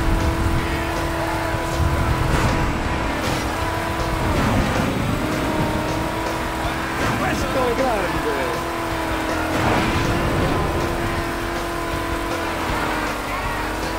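Tyres screech as a car drifts through bends.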